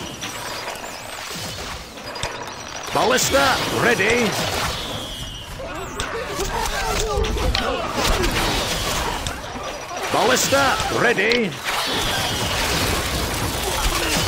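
Volleys of arrows whoosh through the air.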